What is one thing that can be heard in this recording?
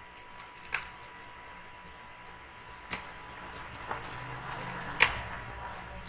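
Keyboard keys click softly as someone types.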